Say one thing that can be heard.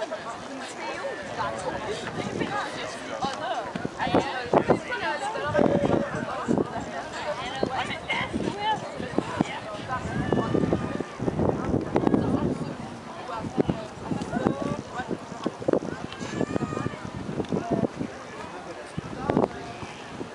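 Several people talk nearby, outdoors.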